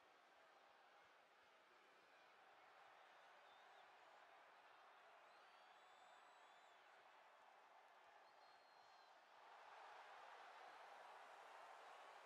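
A large crowd cheers and roars steadily, growing louder toward the end.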